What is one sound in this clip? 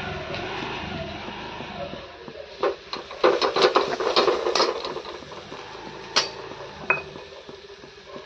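A metal spoon scrapes and taps against a metal pan.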